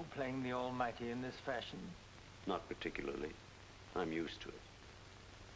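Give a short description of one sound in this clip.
A second man answers in a low, firm voice.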